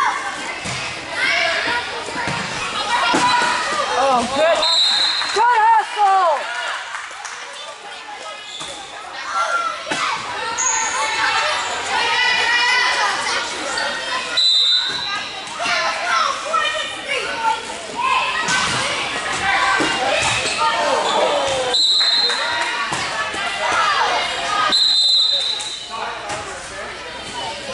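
Girls shout and call out to each other in a large echoing gym.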